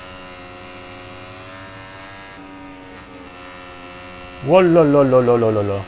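A racing motorbike engine drones steadily.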